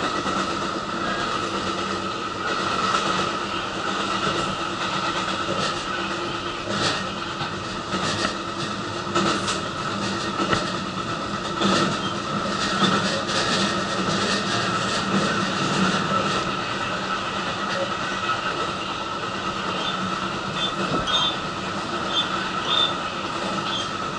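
A train hums and rumbles steadily along the track.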